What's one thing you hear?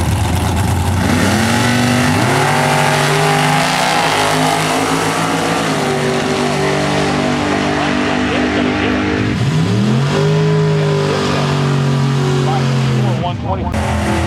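Race car engines roar loudly as cars launch and speed away, rising and dropping in pitch with each gear change.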